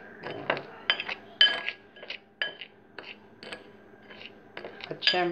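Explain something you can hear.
A plastic spoon scrapes and clinks against a ceramic bowl.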